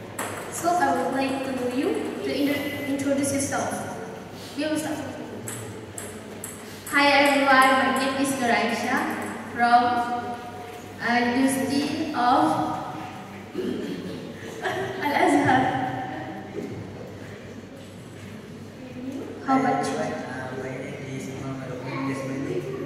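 A man speaks with animation into a microphone, amplified through a loudspeaker in an echoing room.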